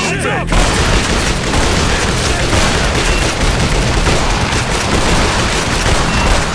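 A submachine gun fires rapid, loud bursts close by.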